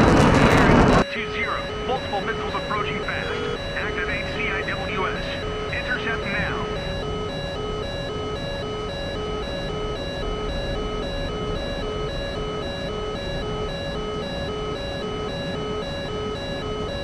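A jet engine rumbles steadily, heard from inside the cockpit.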